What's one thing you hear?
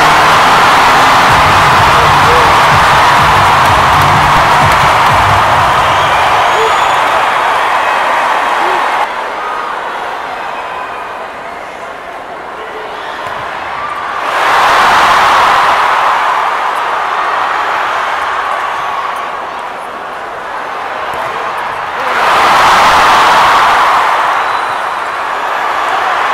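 A large crowd roars and cheers in a big echoing arena.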